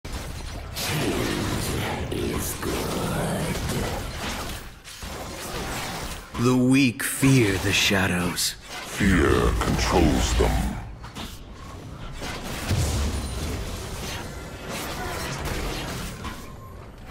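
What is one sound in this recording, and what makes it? Magical blasts and sword strikes clash in a fight between fantasy characters.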